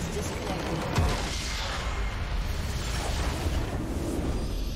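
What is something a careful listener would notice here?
A large structure in a game explodes with a deep boom.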